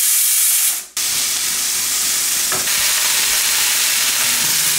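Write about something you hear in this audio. Onions sizzle in a hot pan.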